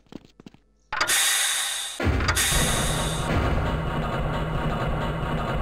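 A lift starts with a loud clunk and rumbles steadily as it moves.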